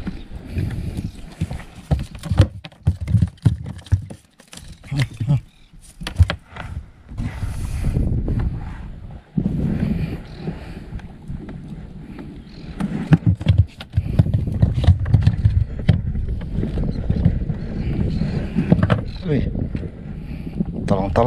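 Knocks and thuds sound on a boat's hull.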